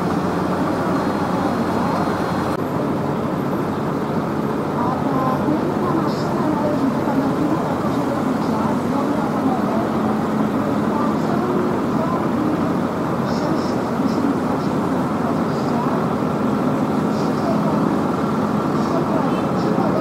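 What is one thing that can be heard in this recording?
Tractor engines rumble and chug steadily as they roll slowly past close by.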